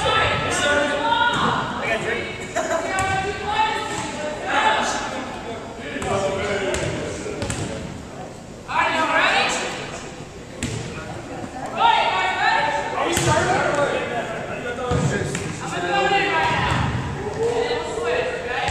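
A volleyball thumps as players hit it.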